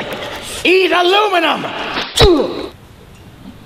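A man shouts with animation close by.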